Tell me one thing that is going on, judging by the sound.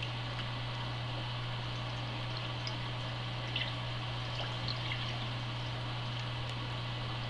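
A stylus taps lightly on a touchscreen.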